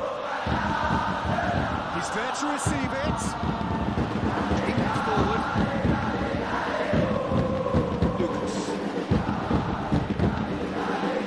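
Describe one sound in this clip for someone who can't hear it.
A large crowd cheers and chants steadily in a stadium.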